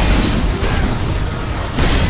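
Rocks explode and debris scatters.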